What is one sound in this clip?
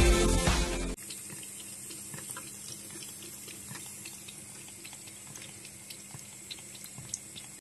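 A cat laps water with quick, soft licks.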